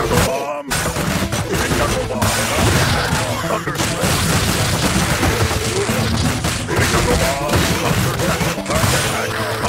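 Punches and kicks land with rapid thuds and smacks.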